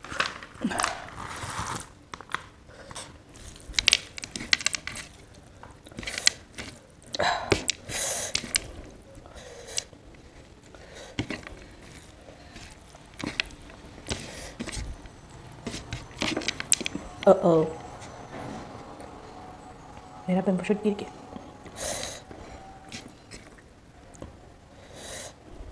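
Fingers squish and knead soft rice on a plate, close up.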